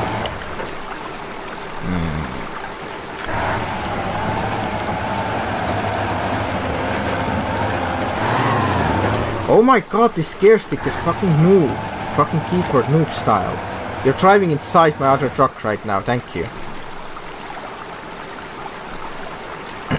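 A heavy truck engine drones and strains at low speed.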